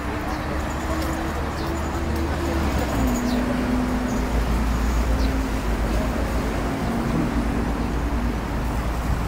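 A bus engine drones as the bus drives past.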